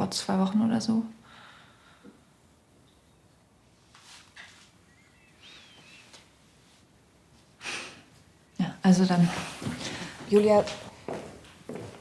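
A woman speaks tensely nearby.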